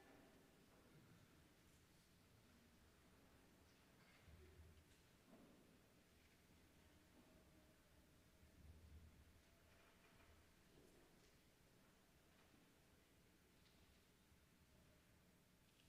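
Sheet music pages rustle softly.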